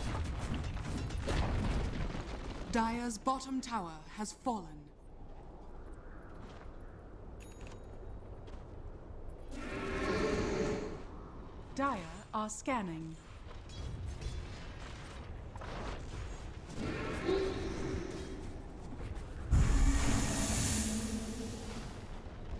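Fantasy game battle effects crash and whoosh in bursts.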